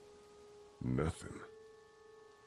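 A man says a single short word calmly, close by.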